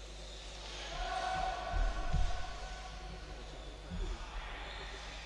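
Players slap hands in a large echoing hall.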